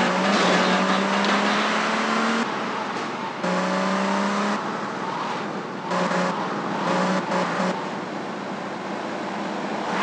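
A car engine roars steadily.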